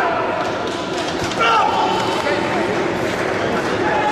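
A heavy barbell clanks into its rack.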